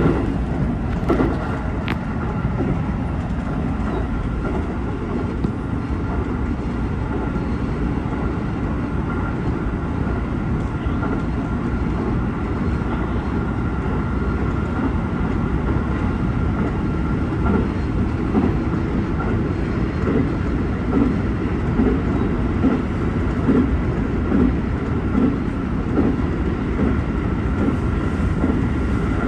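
Train wheels click rhythmically over rail joints.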